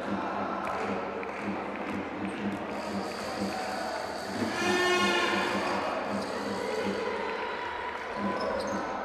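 A basketball bounces steadily on a hard floor.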